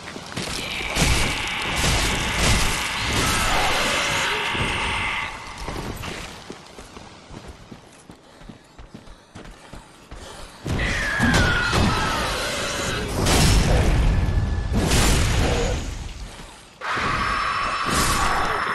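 Sword blows strike and slash with sharp impacts.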